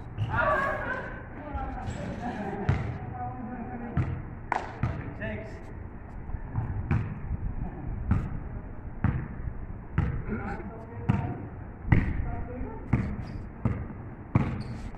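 A basketball bounces on a hard court with sharp thuds.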